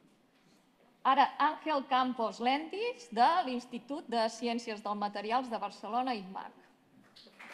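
A man speaks through a microphone, echoing in a large hall.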